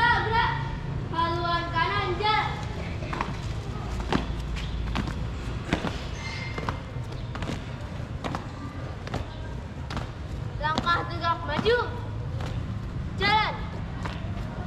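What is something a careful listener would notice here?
A young girl shouts marching commands loudly outdoors.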